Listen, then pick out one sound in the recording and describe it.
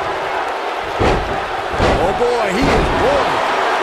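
Heavy stomps thud onto a body.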